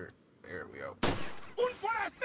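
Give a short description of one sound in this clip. A gunshot cracks sharply.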